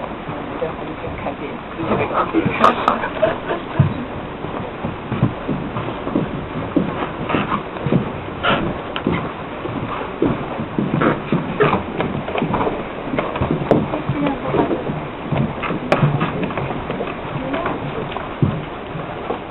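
Young people chatter nearby.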